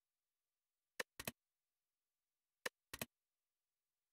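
Short game menu clicks and chimes sound in quick pairs.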